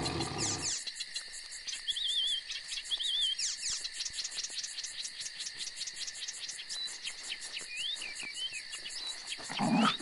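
A small winged creature flaps its wings.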